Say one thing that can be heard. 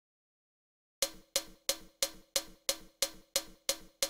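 A drum is struck in a steady, even beat.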